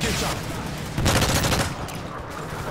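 A rifle fires a rapid burst of shots nearby.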